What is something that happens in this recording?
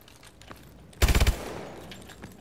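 A rifle fires a short rapid burst at close range.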